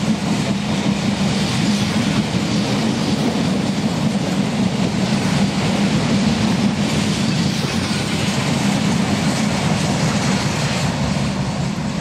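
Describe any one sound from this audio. A long freight train rumbles past close by, its wagons clattering over the rails.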